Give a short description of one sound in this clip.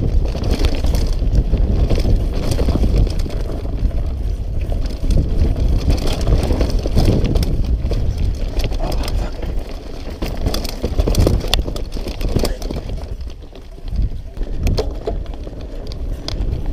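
A bicycle's chain and frame clatter sharply over bumps.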